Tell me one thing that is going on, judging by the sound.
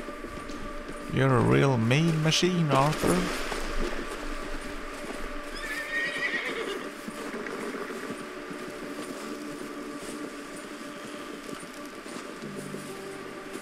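Wind blows outdoors in a snowstorm.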